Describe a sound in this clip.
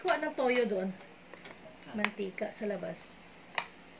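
Oil pours into a pan.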